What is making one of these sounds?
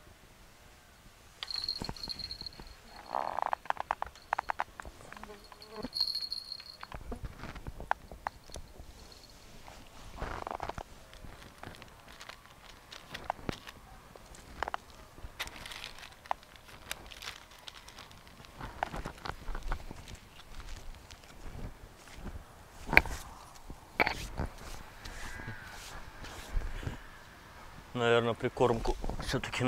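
Leaves rustle as a man moves through plants.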